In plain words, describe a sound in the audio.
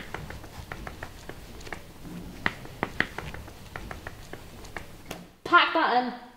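Shirt fabric rustles as a man tugs at his collar.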